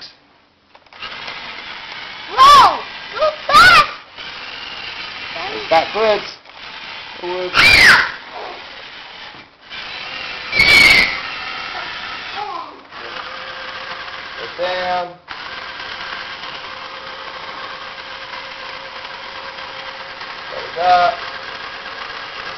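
A small electric motor whirs steadily as a toy bulldozer crawls along.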